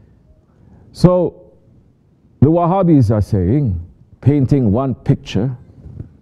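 A man reads aloud in a slow, chanting voice over a microphone in an echoing hall.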